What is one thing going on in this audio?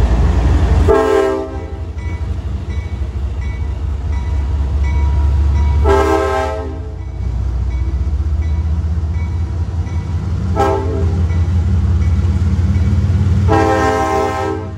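A train horn blasts several times.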